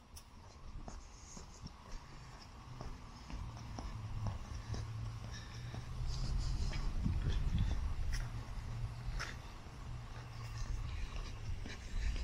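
Footsteps tap along a paved path outdoors.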